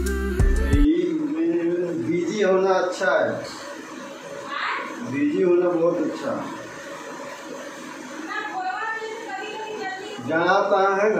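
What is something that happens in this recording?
A man sings into a microphone close by.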